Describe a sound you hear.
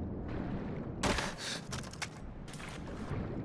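A person splashes through water.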